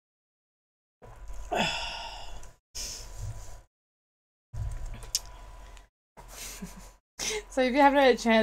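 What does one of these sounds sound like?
A person speaks close to a microphone in a playful, animated voice.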